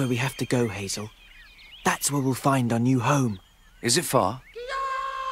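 A young man speaks anxiously up close.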